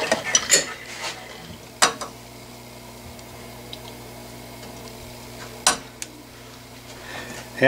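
A metal tool clicks and taps against metal.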